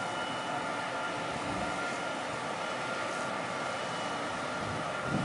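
A docked ship's machinery hums steadily.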